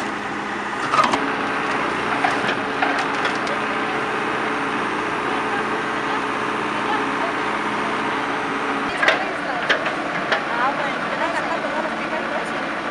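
A backhoe engine rumbles steadily close by.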